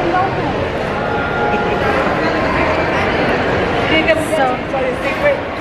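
Many voices chatter in a large echoing hall.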